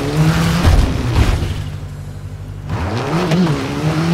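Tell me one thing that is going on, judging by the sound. A car crashes into trees with a thud.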